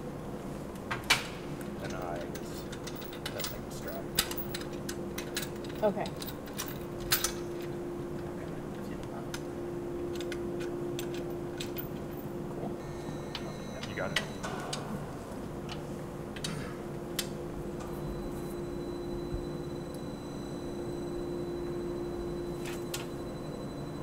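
Metal parts clank and knock as a panel is handled.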